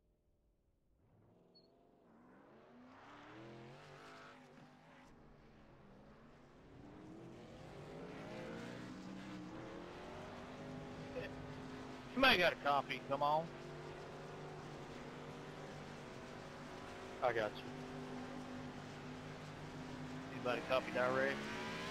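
A race car engine revs up and drones steadily.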